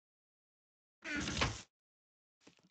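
A wooden chest thuds shut.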